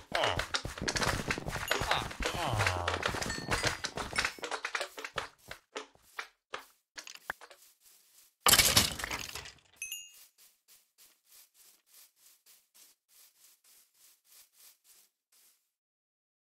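Footsteps tread steadily across soft ground.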